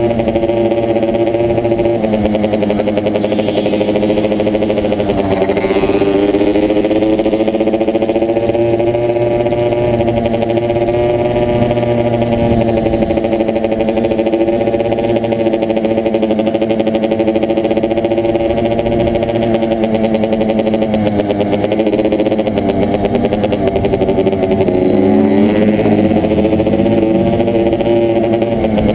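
A motorcycle engine roars steadily up close, rising and falling in pitch as it revs.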